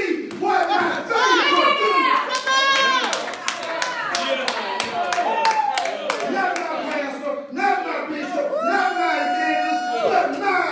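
A man preaches with passion into a microphone in an echoing room.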